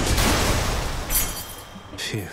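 Weapon blows strike with heavy thuds.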